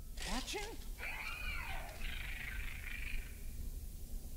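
A creature screeches and chitters.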